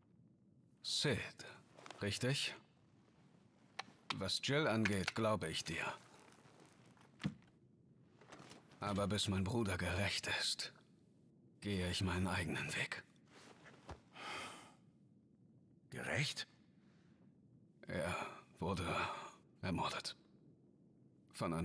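A young man speaks calmly and firmly, close by.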